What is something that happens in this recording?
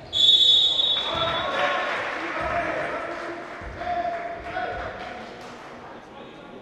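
A crowd of spectators cheers and shouts in an echoing hall.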